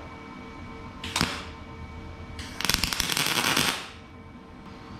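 An electric welder crackles and sizzles in short bursts.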